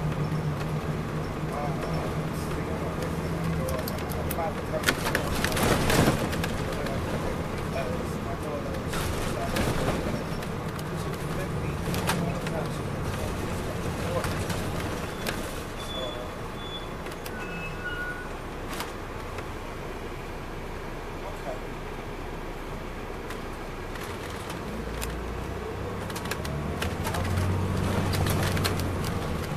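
Rattles and knocks sound through a coach bus's body as the bus rolls over the street.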